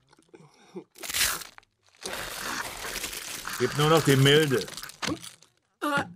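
A woman crunches and gulps food noisily.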